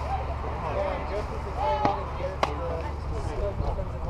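A softball smacks into a catcher's glove.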